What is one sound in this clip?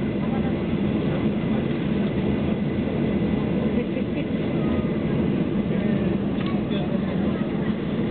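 Jet engines roar steadily inside an aircraft cabin as it taxis.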